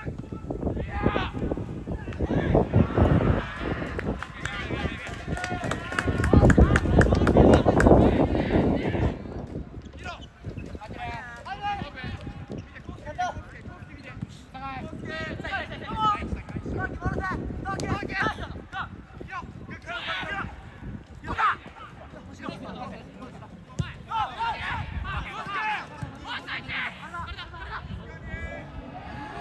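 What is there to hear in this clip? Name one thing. Young men shout and call to each other across an open field, at a distance.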